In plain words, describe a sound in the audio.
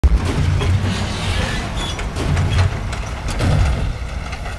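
Debris crunches and clatters under heavy wheels.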